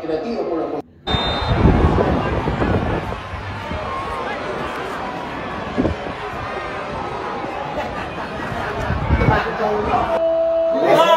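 A crowd in a stadium roars over a television broadcast.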